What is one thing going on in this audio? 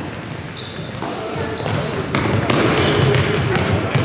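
A ball thumps off feet and the floor.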